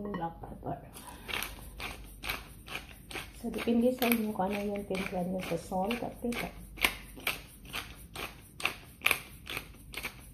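A pepper grinder cranks with rapid clicking.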